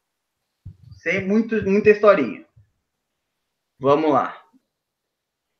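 A young man speaks calmly into a microphone, with pauses.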